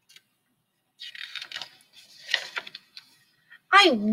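A book page rustles as it is turned.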